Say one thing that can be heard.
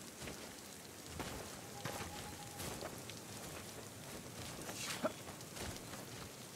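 Footsteps crunch over forest ground.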